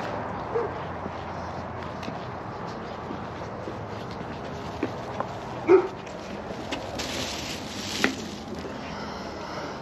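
Footsteps scuff on concrete outdoors.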